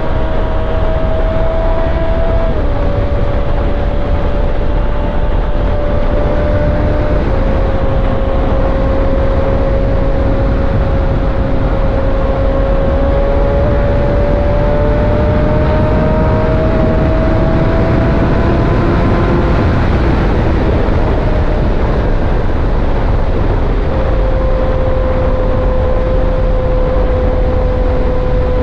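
A motorcycle engine hums steadily at speed, its pitch shifting with gear changes.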